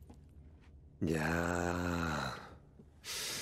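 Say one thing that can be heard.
A man speaks calmly and briefly.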